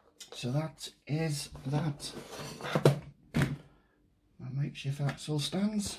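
A cardboard box is picked up and handled with soft rustling knocks.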